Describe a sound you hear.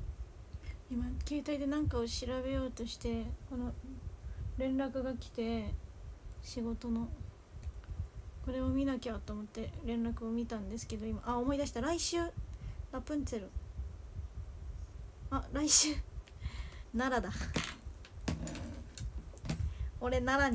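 A young woman speaks casually and close by.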